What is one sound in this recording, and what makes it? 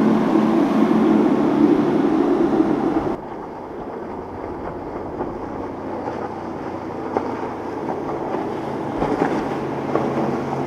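A motorboat engine roars at speed.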